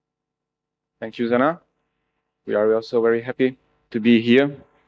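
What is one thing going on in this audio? A man speaks calmly into a microphone, heard through loudspeakers in a large hall.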